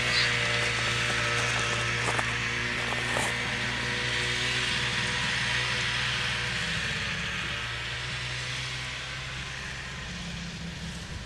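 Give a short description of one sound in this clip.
A snowmobile engine drones steadily in the distance and slowly fades.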